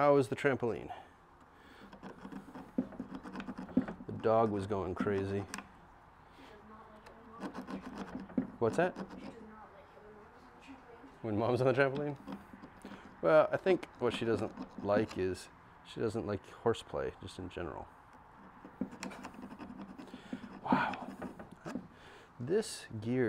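A hand tool taps and clicks on metal.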